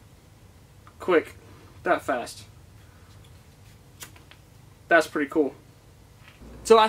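A man speaks calmly and closely into a microphone, in short bursts.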